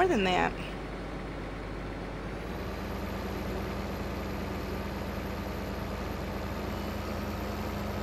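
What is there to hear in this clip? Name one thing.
Grain pours from an unloading auger into a trailer.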